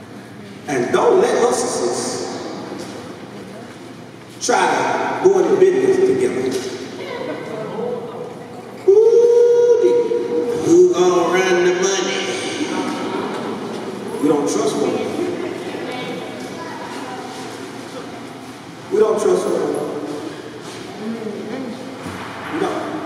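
A man speaks with animation through a microphone and loudspeakers, echoing in a large room.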